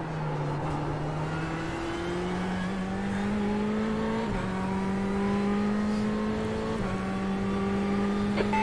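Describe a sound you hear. A racing car engine drones, rising slowly in pitch and dipping briefly at each gear change.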